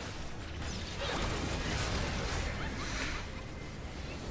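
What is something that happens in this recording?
Magic spell blasts whoosh and crackle in a game.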